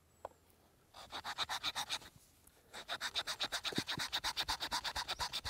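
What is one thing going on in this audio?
A knife scrapes rapidly across wood, shaving it in quick strokes.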